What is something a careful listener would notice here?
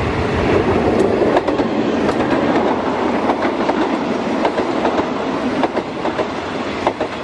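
Passenger coach wheels clack rhythmically over rail joints.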